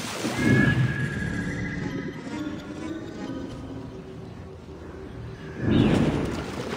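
Sounds turn muffled and dull under water.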